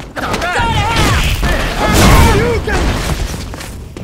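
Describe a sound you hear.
Fire roars in a burst of flames.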